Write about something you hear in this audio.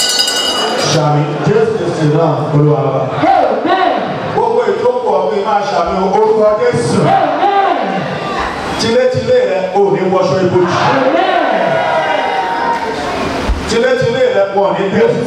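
A man sings with passion through a microphone.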